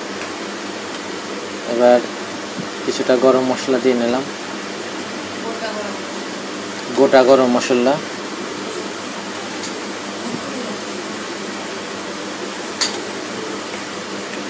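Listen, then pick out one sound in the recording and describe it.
A wooden spoon scrapes and stirs thick food in a pan.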